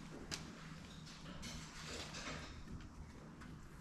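A paintbrush scrapes against a plastic tray.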